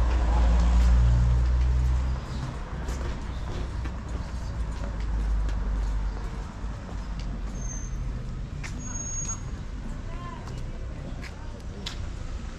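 Footsteps tap on a stone pavement.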